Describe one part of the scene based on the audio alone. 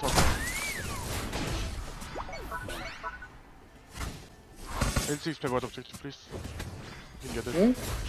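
A game's battle effects whoosh, zap and crackle.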